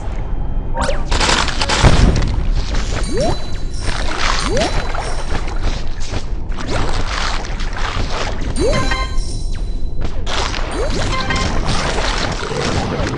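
A shark chomps and crunches through prey in bursts.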